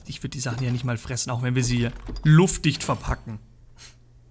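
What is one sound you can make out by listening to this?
A young man talks with animation close to a microphone.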